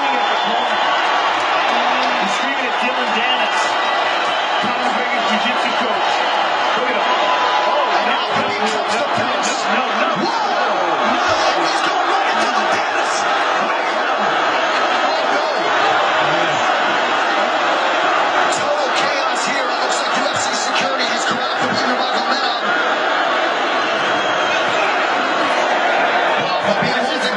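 A large arena crowd roars and shouts loudly throughout.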